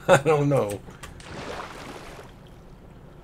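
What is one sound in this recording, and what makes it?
Water splashes as something plunges in.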